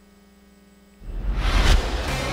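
A loud game sound effect whooshes and crashes.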